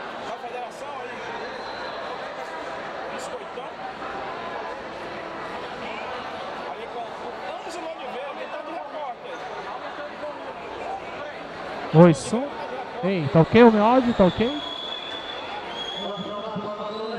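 A crowd murmurs and chatters in the stands of an echoing hall.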